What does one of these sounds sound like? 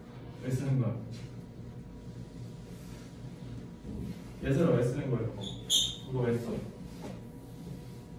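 A young man speaks calmly in short bursts.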